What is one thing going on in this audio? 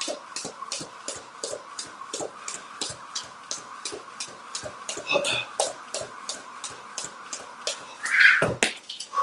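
A jump rope clicks quickly and steadily against the floor.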